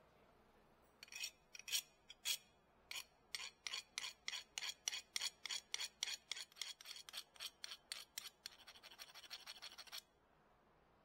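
A metal file rasps back and forth over metal in quick, even strokes.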